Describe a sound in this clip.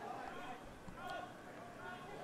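A football is kicked once with a dull thud.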